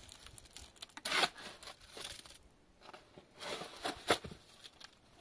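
A trowel scrapes mortar in a metal basin.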